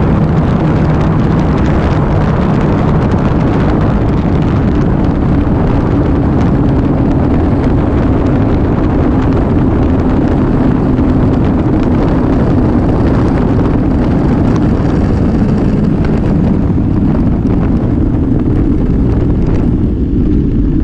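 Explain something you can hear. A motorcycle engine drones steadily as it rides along.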